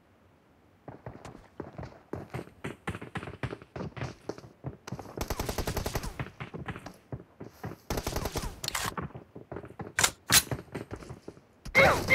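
Footsteps thud quickly across hard ground.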